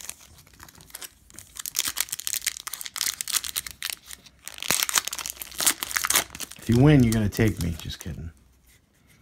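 A foil wrapper crinkles and rustles between fingers.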